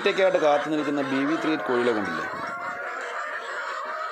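Hens cluck nearby.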